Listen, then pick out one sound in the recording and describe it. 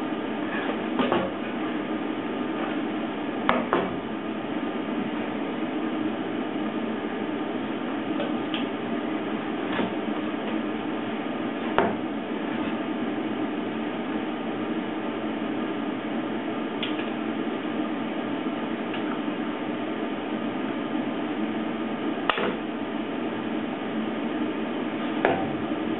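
Metal parts clink and knock against each other.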